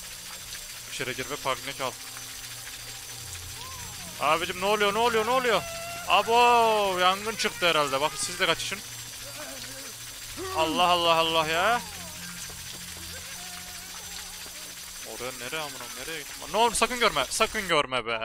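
A young man talks animatedly and close to a microphone.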